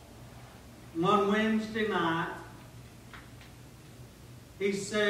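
A middle-aged man preaches with emphasis through a microphone in a large room.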